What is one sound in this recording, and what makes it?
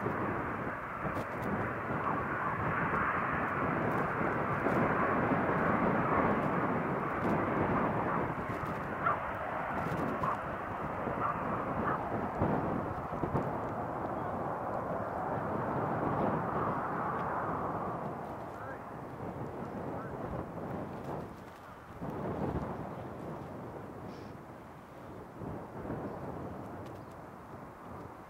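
A jet airliner's engines roar loudly as it taxis past.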